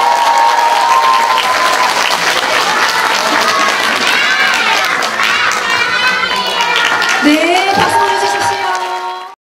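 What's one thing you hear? A group of young children sing together loudly.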